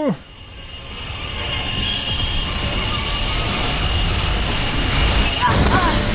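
Sparks crackle and hiss from a cutting torch.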